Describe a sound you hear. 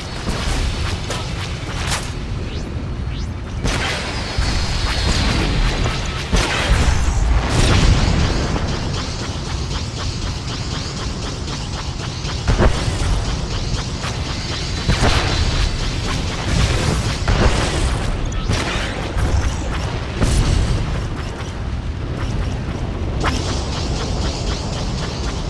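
Laser blasts fire in rapid bursts.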